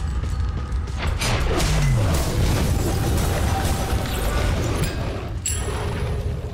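Weapons clash and slash in a fight.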